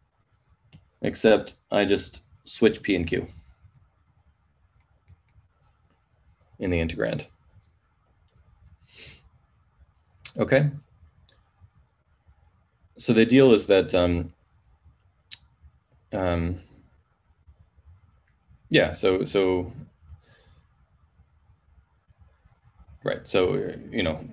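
A man speaks calmly through a microphone in short bursts with pauses.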